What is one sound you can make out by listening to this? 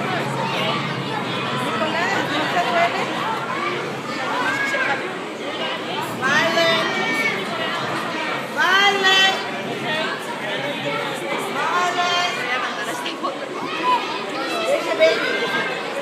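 Young children chatter and squeal nearby.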